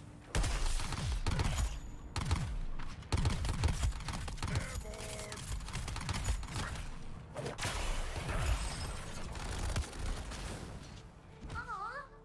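Guns fire rapidly with loud booming blasts.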